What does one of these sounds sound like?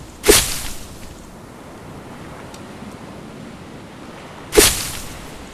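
A blade chops into a palm plant with sharp, rustling thwacks.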